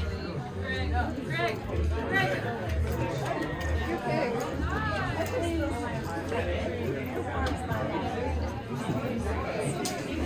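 A crowd of people chatters and murmurs nearby.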